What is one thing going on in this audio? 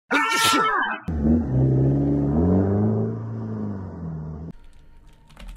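A car engine revs loudly and its pitch rises and falls.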